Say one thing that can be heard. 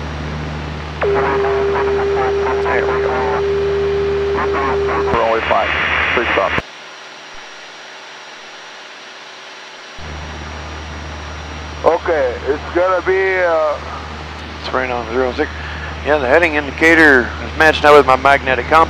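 A man talks through a headset intercom.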